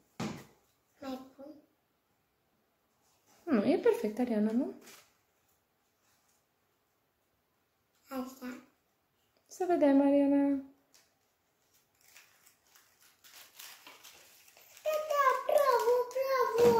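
A young girl talks close by in a bright, childlike voice.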